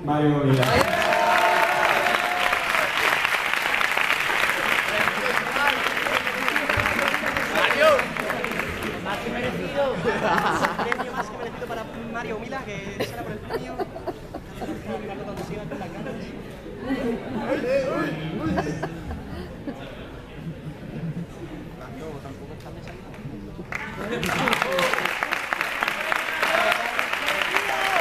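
Applause rings out in a large echoing hall.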